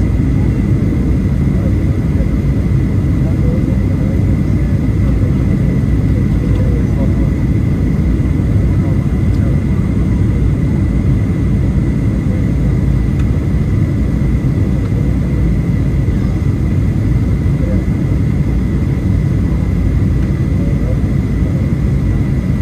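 A jet engine roars steadily with a deep rumble, heard from inside a plane's cabin.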